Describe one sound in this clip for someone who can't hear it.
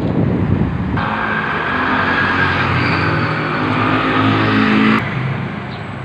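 A scooter passes by on the street.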